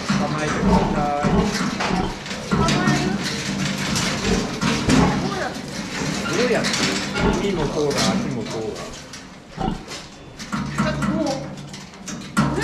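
Pigs grunt and squeal nearby.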